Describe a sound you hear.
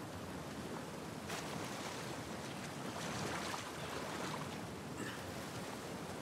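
Water splashes as a man swims and climbs out of a pool.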